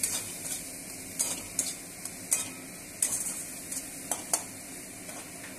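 A metal spatula scrapes and clinks against a wok.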